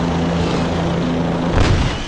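A helicopter's rotor whirs.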